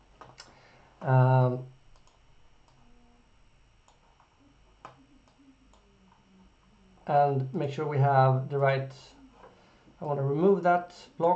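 A man speaks calmly through a computer microphone, in short bursts.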